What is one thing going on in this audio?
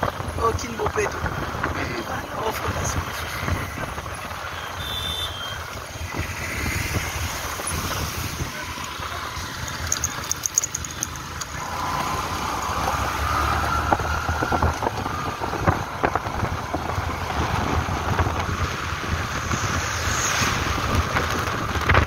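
Wind rushes past close by.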